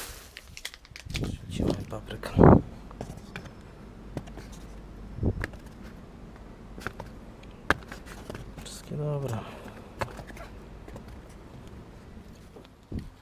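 Peppers thump softly as a hand moves them in a cardboard box.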